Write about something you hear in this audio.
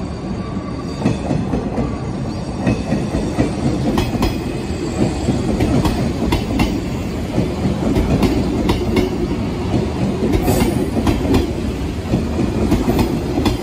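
Train wheels clack over rail joints in a steady rhythm.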